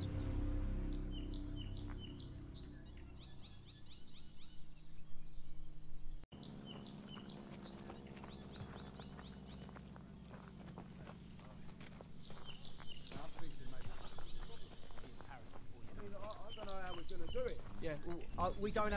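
Boots crunch on gravel as soldiers march.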